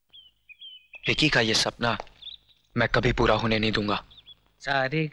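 A young man speaks with emotion, close by.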